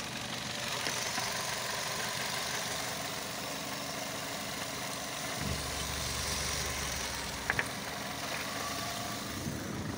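A small petrol four-cylinder car engine runs with the oil filler cap off.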